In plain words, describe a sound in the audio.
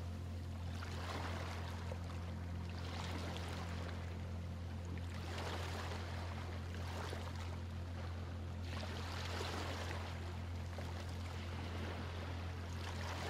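Small waves wash gently over a pebbly shore in repeated surges.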